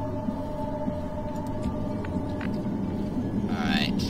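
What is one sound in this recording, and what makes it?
A small fire crackles.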